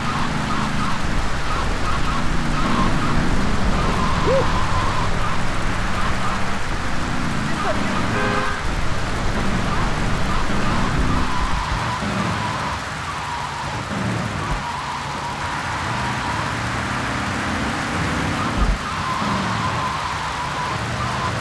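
Wind blows hard in a storm.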